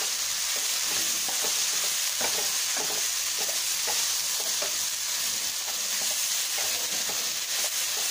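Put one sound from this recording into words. A wooden spatula stirs chickpeas in a frying pan.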